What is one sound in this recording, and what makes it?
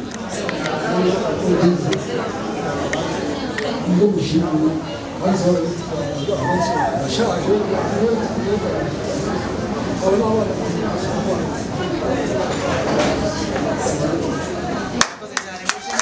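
An elderly man speaks steadily into a microphone over a loudspeaker.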